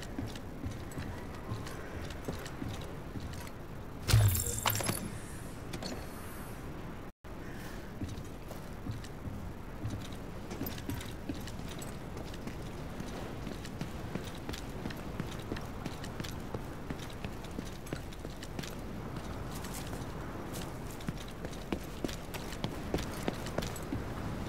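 Footsteps crunch on hard ground at a steady pace.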